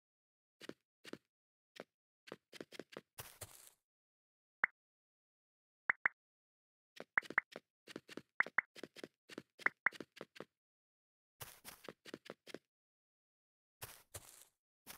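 Game footsteps tap quickly on hard blocks.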